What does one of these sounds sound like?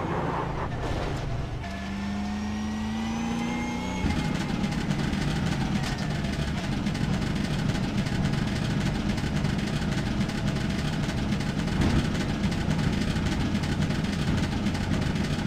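Tyres rumble over the track surface.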